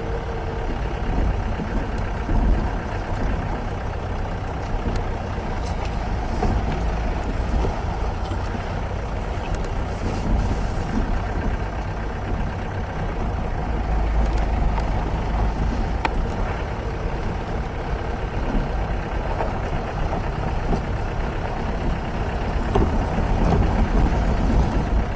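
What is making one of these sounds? A vehicle engine rumbles steadily.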